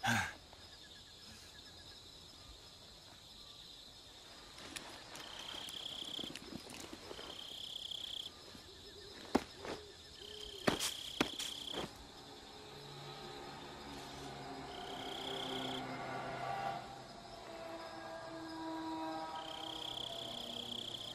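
Tall grass rustles as a man crawls through it.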